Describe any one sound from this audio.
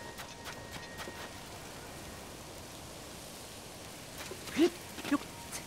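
Soft taps and scrapes of hands and feet climbing on stone.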